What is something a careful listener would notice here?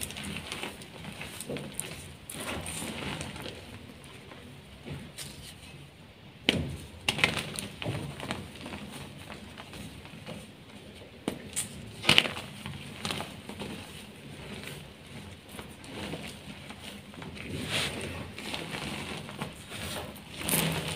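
Hands scoop and squeeze dry crumbly powder with a soft crunching rustle.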